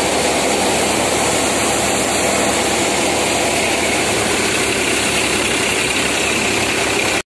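A threshing machine roars and rattles loudly and steadily.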